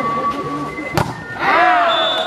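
A volleyball is spiked with a sharp slap.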